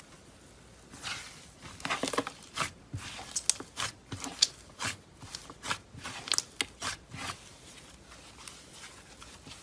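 Slime crackles and squelches as hands squeeze and stretch it.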